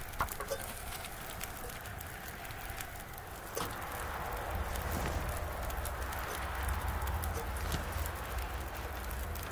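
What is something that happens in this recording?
A campfire crackles steadily.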